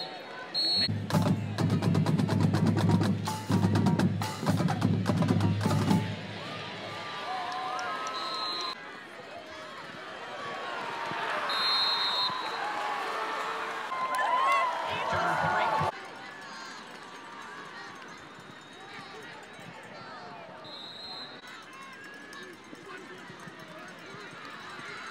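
A large crowd cheers in an open stadium.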